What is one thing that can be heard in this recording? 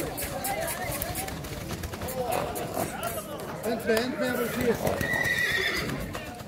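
A crowd of young men talks and calls out nearby.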